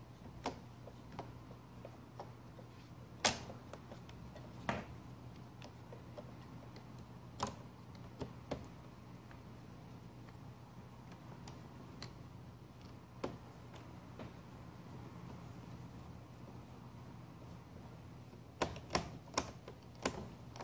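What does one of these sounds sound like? Plastic parts click and knock as hands fit them together.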